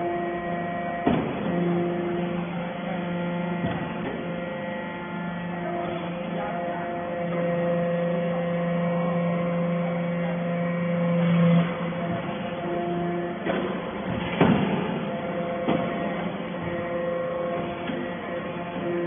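A large machine hums and whines steadily in an echoing hall.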